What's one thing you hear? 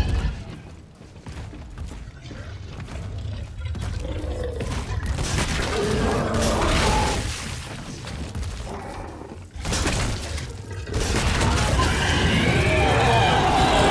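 A weapon fires in sharp bursts.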